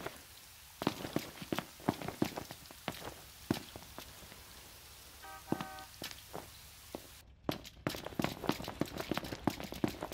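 Footsteps run quickly on a hard road.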